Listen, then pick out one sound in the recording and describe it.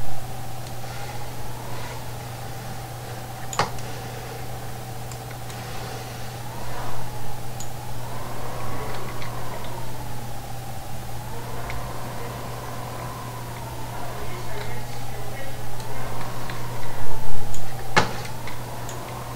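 A tractor engine hums steadily, rising and falling as it revs.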